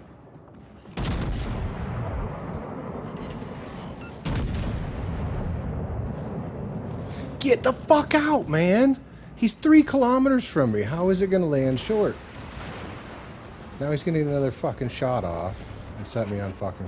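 Heavy naval guns fire with deep booms.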